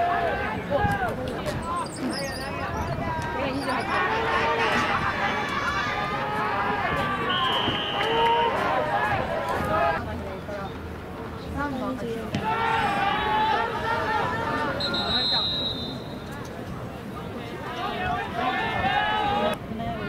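Young men shout and call out loudly outdoors.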